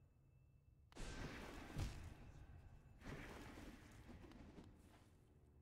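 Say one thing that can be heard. A sharp whoosh bursts out and fades.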